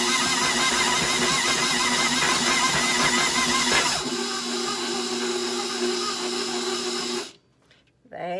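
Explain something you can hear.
A stand mixer whirs loudly, beating thick dough.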